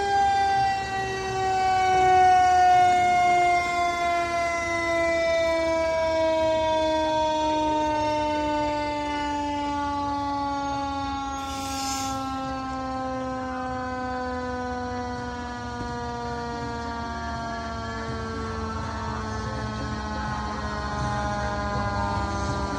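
A fire engine's diesel engine rumbles as it rolls slowly past.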